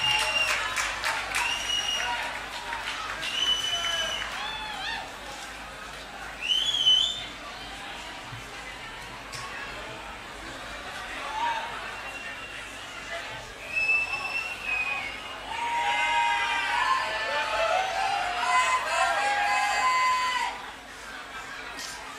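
A large crowd cheers and whistles loudly in an echoing hall.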